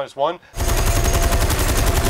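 A heavy deck gun fires in rapid bursts.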